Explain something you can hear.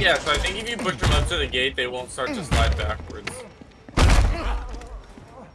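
A wooden door is bashed and cracks open with heavy thuds.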